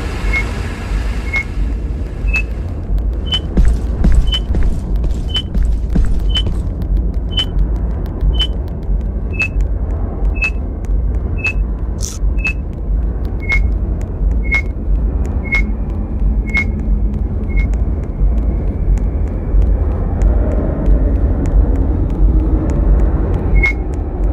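Footsteps tap steadily on a hard floor, about once a second.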